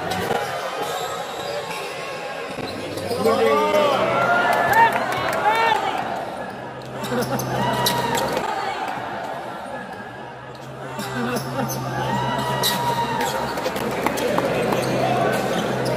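A large crowd murmurs and cheers in an echoing hall.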